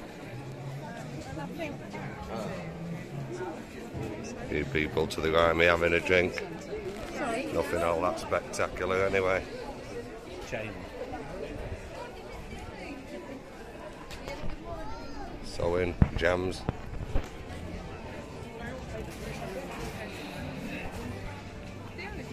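A crowd murmurs outdoors in a busy street.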